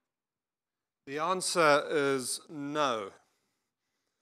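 An older man speaks into a microphone, heard through a loudspeaker.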